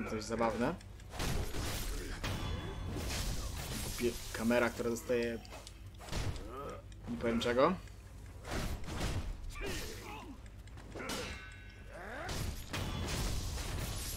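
Swords clash and clang sharply.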